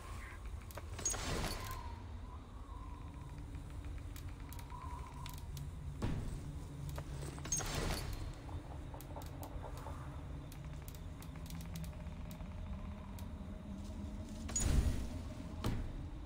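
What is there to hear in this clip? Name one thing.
Soft whooshing menu sounds come now and then.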